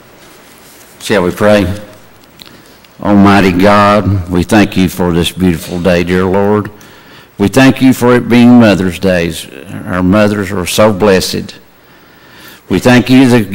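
A man speaks calmly into a microphone, echoing in a large hall.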